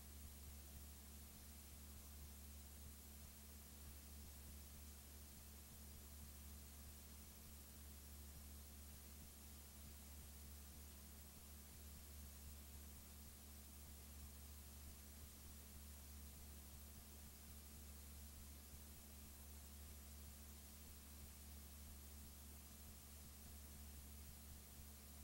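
A low electrical hum drones steadily.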